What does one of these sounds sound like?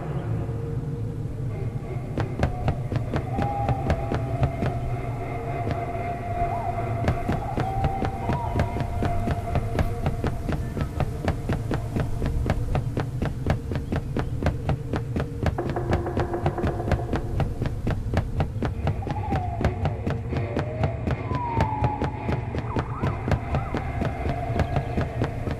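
Footsteps thud quickly on wooden planks.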